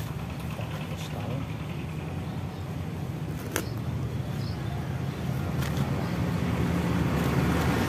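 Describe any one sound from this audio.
A plastic planting bag rustles under a hand.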